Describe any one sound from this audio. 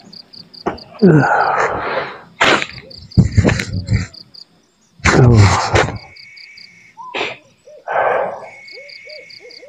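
A man snores in his sleep close by.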